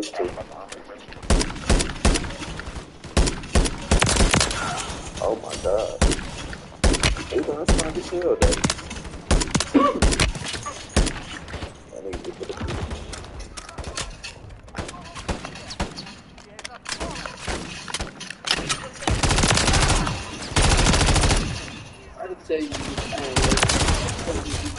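Gunfire crackles in rapid bursts.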